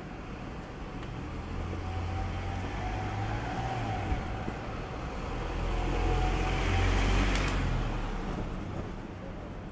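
A car engine rumbles deeply as a car drives slowly closer.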